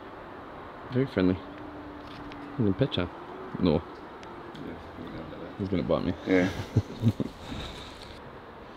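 A man speaks close by outdoors.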